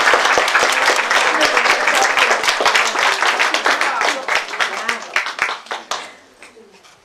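An audience claps loudly in a room, then the applause dies away.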